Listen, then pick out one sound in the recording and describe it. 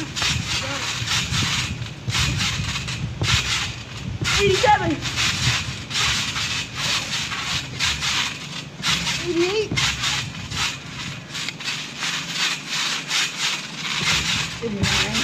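A trampoline mat creaks and thumps as children bounce on it.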